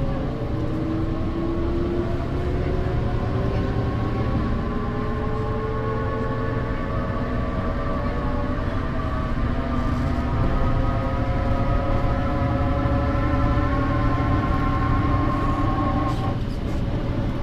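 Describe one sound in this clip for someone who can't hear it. A bus rattles and rumbles as it rolls along the road.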